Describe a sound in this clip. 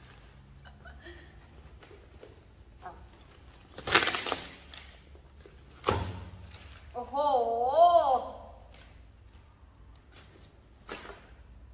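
Cardboard rustles and tears as a box is opened.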